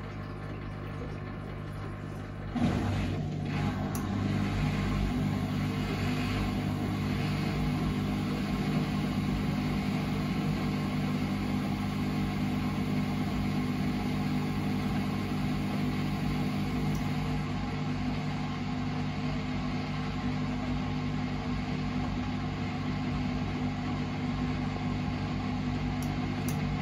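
A washing machine hums steadily and grows louder as its drum speeds up.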